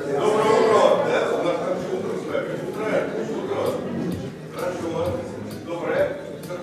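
A crowd of men and women murmurs and chatters nearby in a large echoing hall.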